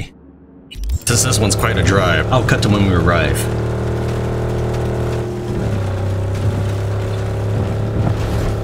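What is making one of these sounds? A vehicle's engine hums steadily as it drives over rough dirt.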